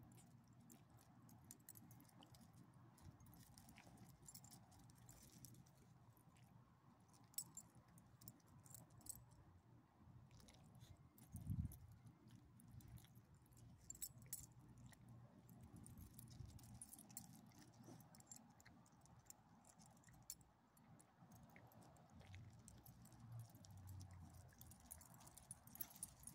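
Footsteps and paws scuff softly on pavement and dry leaves.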